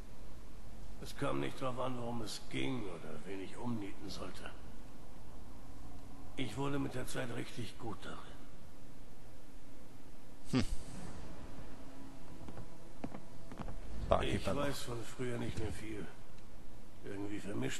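A man speaks calmly, close to a microphone, with pauses.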